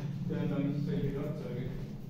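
Footsteps shuffle across a gritty floor.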